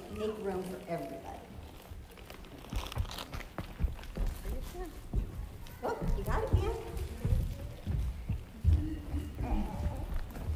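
Children chatter and talk in a large echoing room.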